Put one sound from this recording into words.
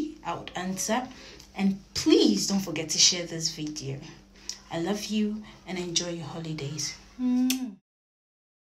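A young woman talks warmly and cheerfully close to a microphone.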